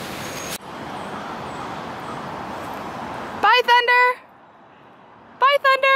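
A young woman talks cheerfully close by.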